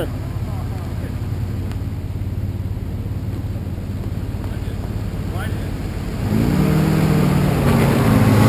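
Plastic tyres crunch over rough rock and grit.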